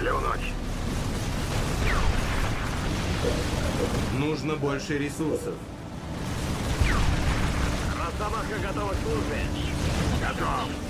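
Explosions boom and rumble.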